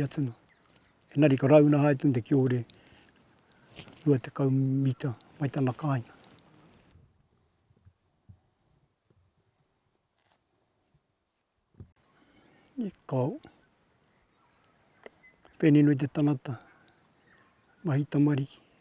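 An elderly man speaks calmly and close by.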